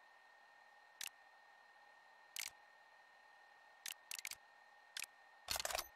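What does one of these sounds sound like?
Short menu clicks sound as a game's map menu switches tabs.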